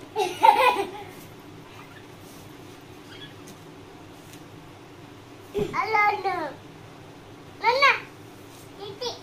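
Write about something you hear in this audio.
A young child squeals and shouts excitedly close by.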